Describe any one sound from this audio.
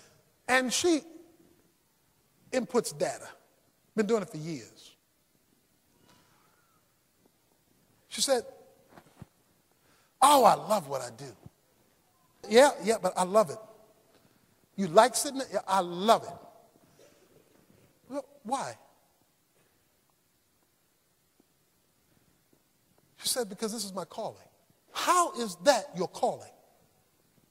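A man speaks with emphasis through a microphone, in short phrases with pauses between them.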